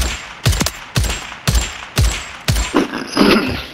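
A rifle fires a burst of loud, evenly spaced shots.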